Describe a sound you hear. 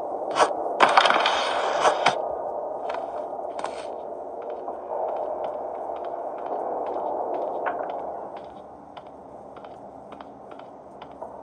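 Fingertips tap and slide on a glass touchscreen.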